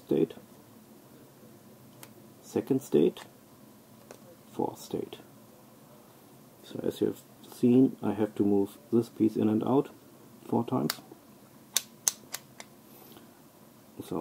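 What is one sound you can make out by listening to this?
Plastic puzzle pieces click and clatter as they are pulled apart and pushed together.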